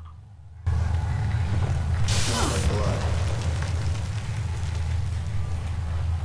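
A young woman speaks quietly into a microphone.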